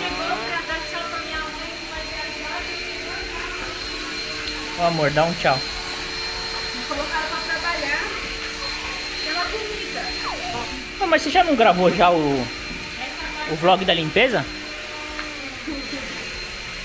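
A vacuum cleaner hums steadily.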